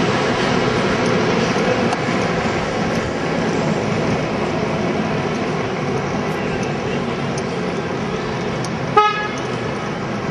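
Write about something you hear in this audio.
Footsteps of many people run on pavement.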